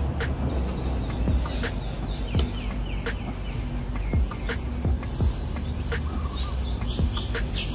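A ladle scrapes softly as batter is spread on a hot griddle.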